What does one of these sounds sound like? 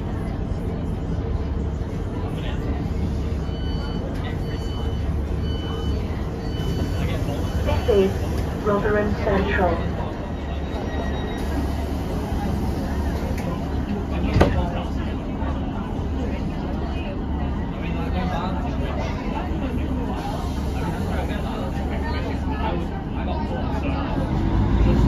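A train's engine idles with a steady low hum.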